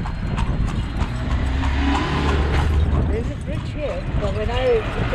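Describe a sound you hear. A minibus drives past close by.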